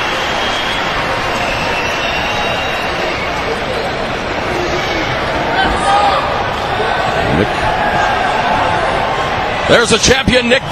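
A large crowd cheers and roars in a big hall.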